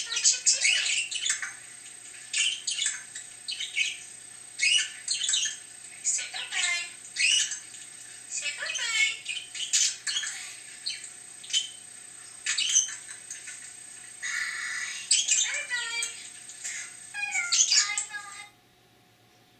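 A budgie chirps and chatters rapidly up close.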